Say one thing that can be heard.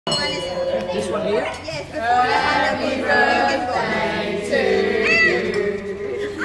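A small group of men, women and a child sing together close by.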